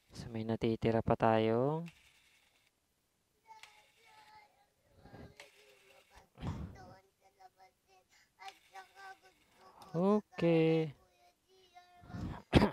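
A small handheld power tool whirs in short bursts, rising and falling in pitch.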